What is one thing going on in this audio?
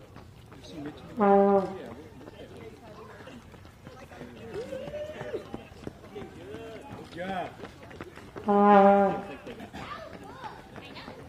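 Runners' shoes patter on pavement.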